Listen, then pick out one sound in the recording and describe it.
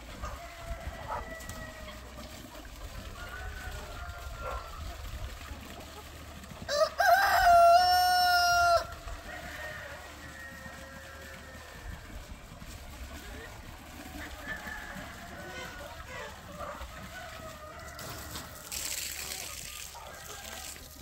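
Hens cluck and murmur nearby.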